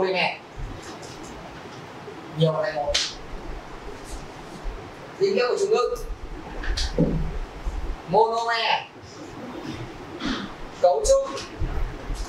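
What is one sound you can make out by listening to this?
A man lectures in short bursts, his voice echoing in a large room.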